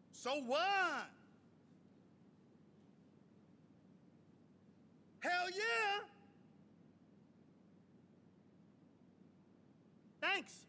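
A man moans loudly in short bursts.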